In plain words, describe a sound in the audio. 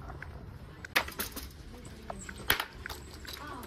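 A plastic shopping basket clatters as it is picked up.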